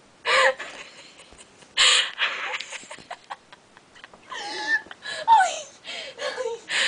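A young woman talks and laughs loudly, close by.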